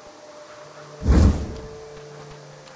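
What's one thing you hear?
A heavy blow lands with a deep thud.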